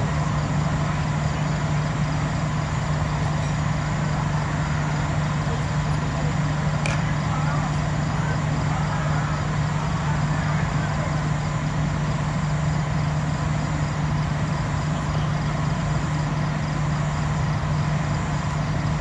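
Wind blows steadily across an open field outdoors.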